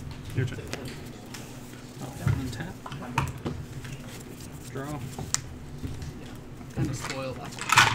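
Playing cards tap and slide on a tabletop.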